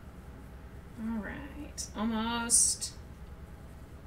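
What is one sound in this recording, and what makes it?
A woman speaks briefly with animation into a close microphone.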